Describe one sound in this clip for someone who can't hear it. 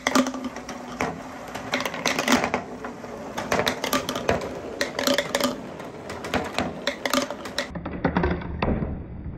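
Plastic balls bounce and clatter on a hard board.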